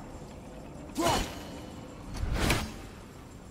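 A heavy blow strikes a crystal with a sharp, ringing crash.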